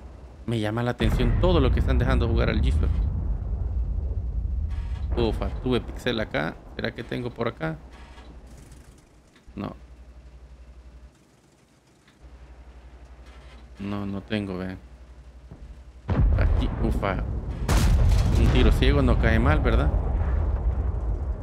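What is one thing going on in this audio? A tank engine rumbles low and heavy.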